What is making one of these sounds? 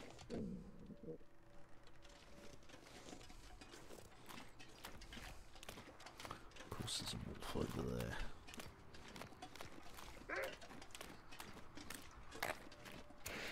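Footsteps crunch on snow and ice.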